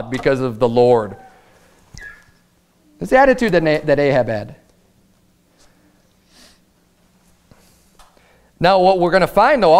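A man speaks clearly and deliberately into a microphone, pausing between phrases.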